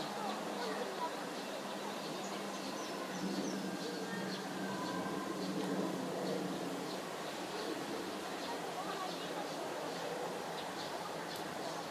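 Water splashes softly as small birds dip and paddle on a pond.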